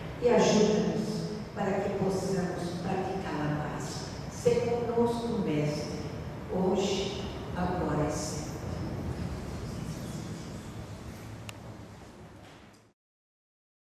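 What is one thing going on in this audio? An elderly woman speaks calmly and close by.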